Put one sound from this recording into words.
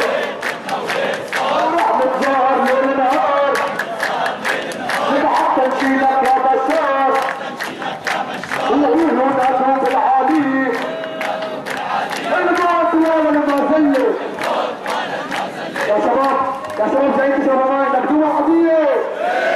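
A large crowd of men chants in unison outdoors.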